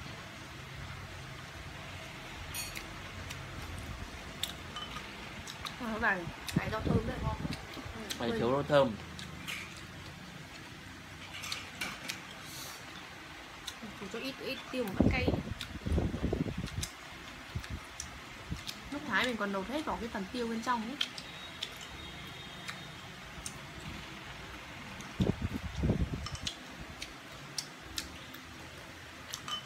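Chopsticks click against dishes.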